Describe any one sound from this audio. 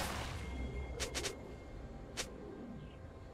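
Game arrows zap with sharp snaps.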